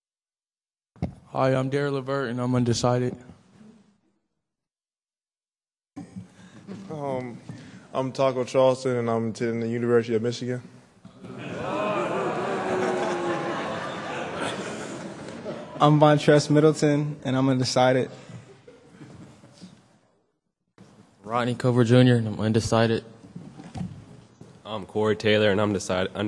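Young men speak one after another into a microphone.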